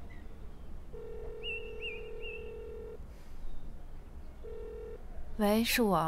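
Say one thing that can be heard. A phone ringing tone purrs through a handset.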